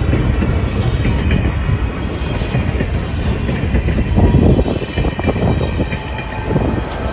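A passenger train rumbles past close by.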